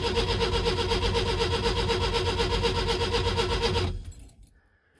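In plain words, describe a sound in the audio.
A car engine idles with a steady, throbbing rumble, then cuts off.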